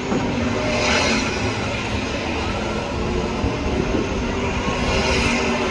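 A race car engine roars loudly.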